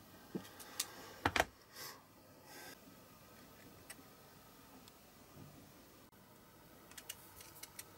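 Pliers snip a thin wire with a sharp click.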